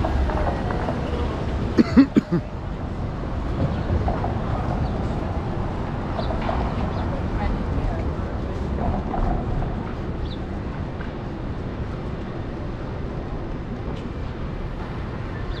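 Traffic drives past on a city street.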